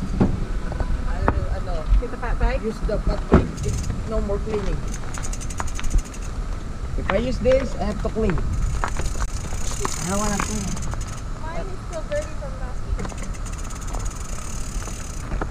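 Bicycle parts clatter and knock as bikes are handled.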